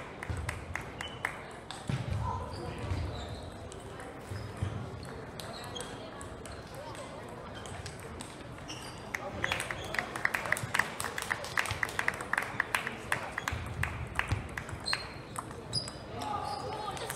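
A ball clicks back and forth on a table tennis table and paddles.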